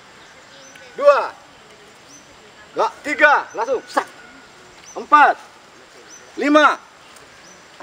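A man shouts short commands outdoors.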